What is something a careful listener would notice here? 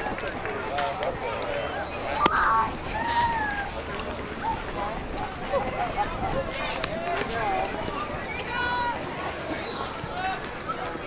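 Young boys shout and call out across an open field.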